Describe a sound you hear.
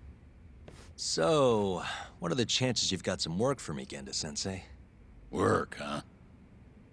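A young man speaks calmly.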